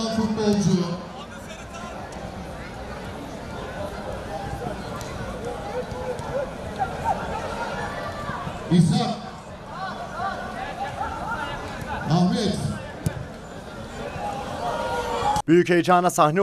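A crowd murmurs and cheers from the stands outdoors.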